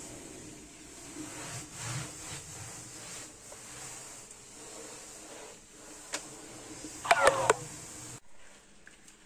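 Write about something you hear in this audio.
A cloth rubs and squeaks across a smooth surface.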